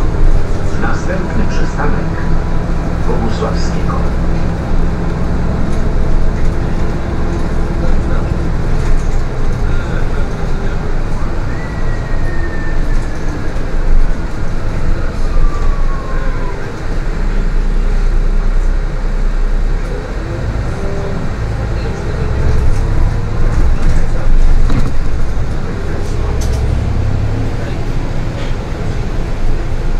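The bus interior rattles and creaks over the road.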